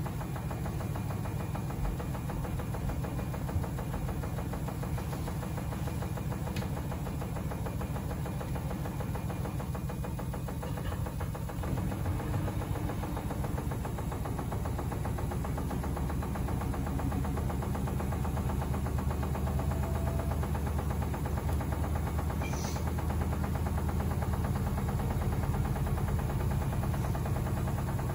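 Laundry and water slosh and tumble inside a washing machine.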